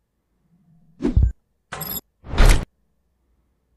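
Three loud, short electronic whooshes and thumps play in quick succession as a game starts up.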